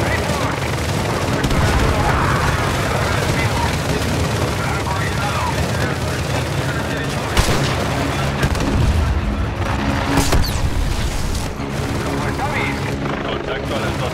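An armoured vehicle's engine rumbles nearby.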